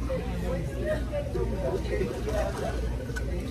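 A man sips a drink through a straw.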